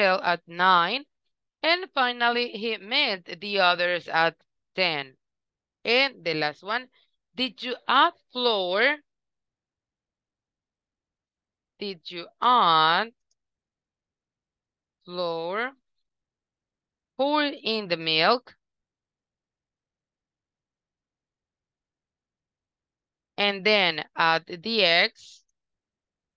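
A woman speaks clearly through an online call, pausing often.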